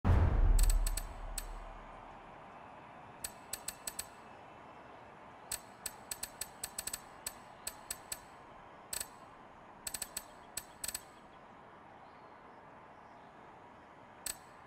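Short, sharp menu clicks tick in quick bursts.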